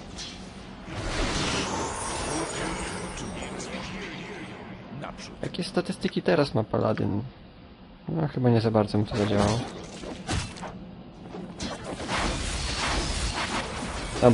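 Magic spells whoosh and shimmer.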